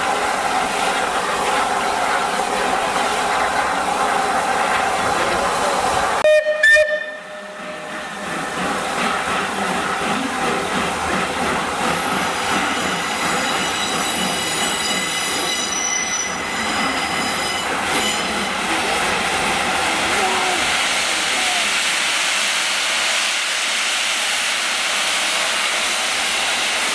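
A steam locomotive hisses and rumbles steadily close by.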